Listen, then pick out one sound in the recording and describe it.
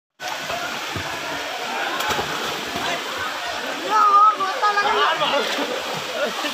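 Water splashes as boys swim and kick.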